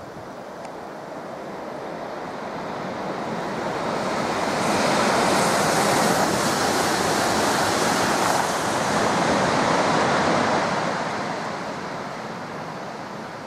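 A train approaches and rushes past at speed with a loud roar, then fades away.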